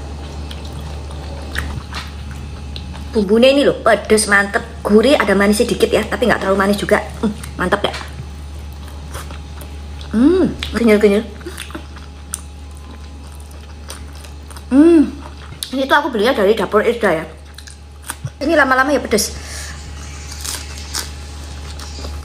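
A young woman chews food with soft smacking sounds.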